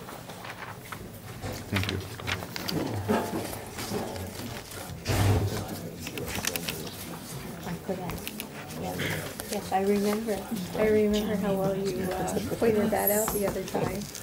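Paper rustles on a table.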